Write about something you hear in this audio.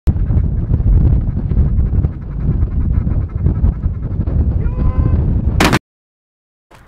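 A flock of geese honks overhead.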